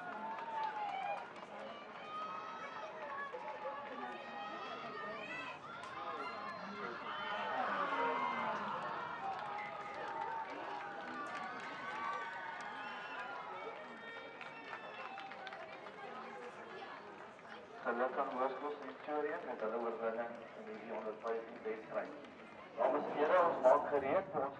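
Young players call out to each other across the field.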